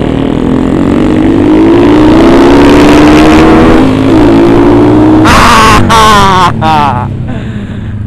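A motorcycle engine revs up loudly, its pitch rising.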